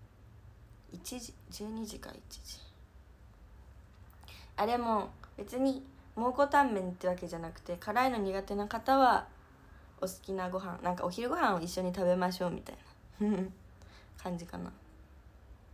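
A young woman speaks softly and casually close to a microphone.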